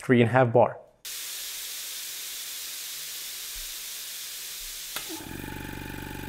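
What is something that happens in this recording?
Compressed air hisses steadily from an air blow gun.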